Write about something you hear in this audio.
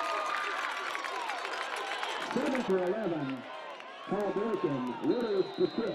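A large crowd in a stadium cheers and shouts outdoors.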